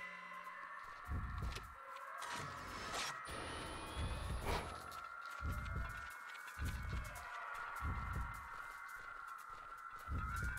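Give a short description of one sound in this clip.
Footsteps crunch on soft forest ground.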